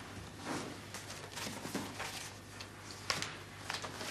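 A woman handles small objects on a table with light knocks.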